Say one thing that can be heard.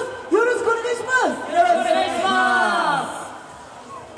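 Young men sing together into microphones over a loudspeaker, outdoors.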